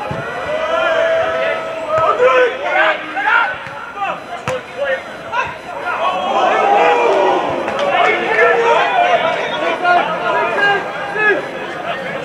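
Players shout across an open field.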